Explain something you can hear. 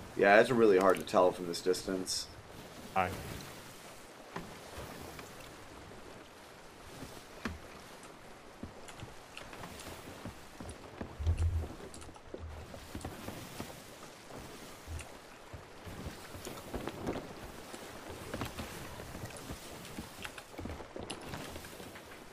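Ocean waves roll and wash steadily.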